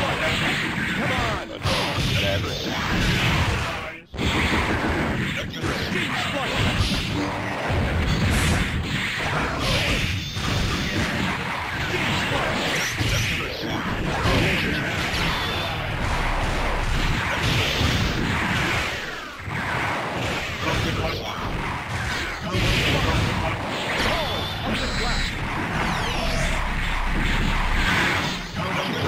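Fight sounds of blasts, punches and energy beams crackle loudly and without a break.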